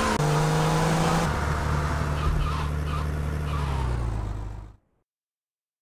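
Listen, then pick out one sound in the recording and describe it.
A car engine rumbles steadily, then cuts out.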